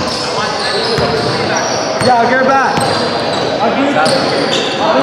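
A basketball bounces on the court with hollow thumps.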